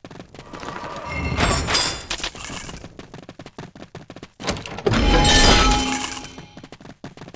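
Weapons clash and spell effects burst in a fight.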